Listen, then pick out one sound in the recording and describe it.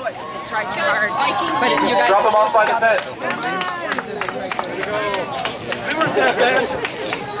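Young women and men chatter and call out cheerfully close by, outdoors.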